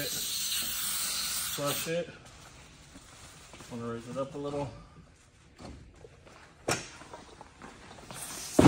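A pressurised sprayer hisses as it sprays water.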